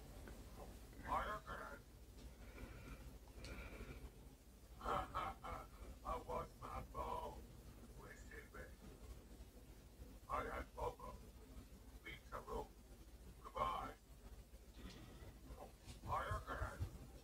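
A man speaks in a deep, gruff voice through television speakers, in short phrases.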